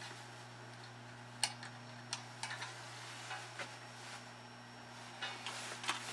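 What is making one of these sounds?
A screwdriver clicks and scrapes against a metal plate.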